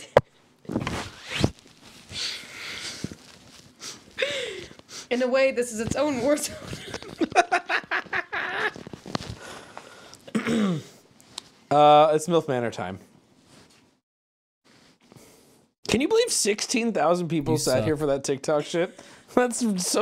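A young woman laughs nearby.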